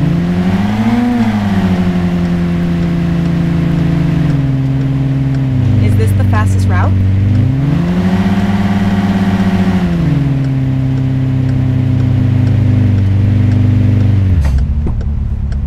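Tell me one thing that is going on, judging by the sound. A sports car engine roars, rising and falling in pitch as it speeds up and slows down.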